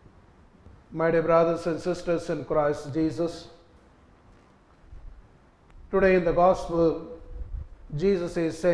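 A man reads aloud clearly and slowly into a microphone in an echoing room.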